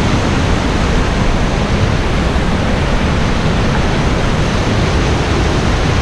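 A mountain stream rushes loudly and steadily over rocks close by.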